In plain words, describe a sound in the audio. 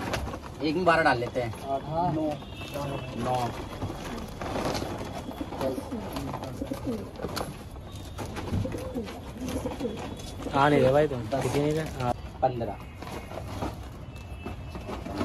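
Other young men talk quietly nearby.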